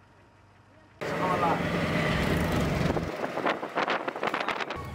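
An auto-rickshaw engine rattles while driving through street traffic.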